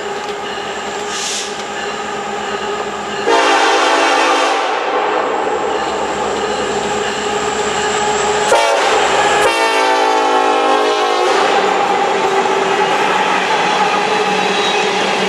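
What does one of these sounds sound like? A diesel train rumbles closer and passes by.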